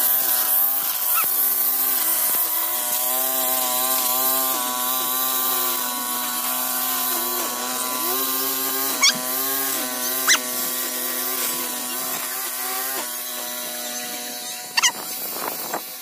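A trimmer line whips and cuts through grass.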